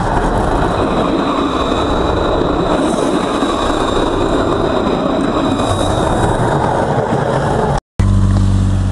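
A tram rolls past very close with a loud, steady rumble and hiss.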